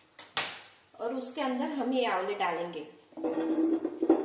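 Dried chickpeas pour and rattle into a metal pan.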